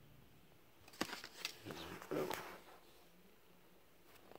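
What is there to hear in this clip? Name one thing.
A paper card slides and taps on a wooden table.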